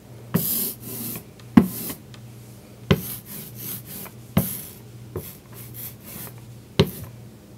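A rubber roller rolls over a sheet with a sticky, crackling sound.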